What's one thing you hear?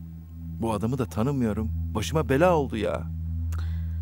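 A man speaks in a low, strained voice nearby.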